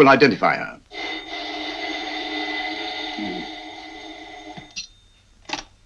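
A telephone rings steadily.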